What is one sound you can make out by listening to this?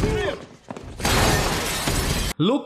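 Dishes clatter and crash.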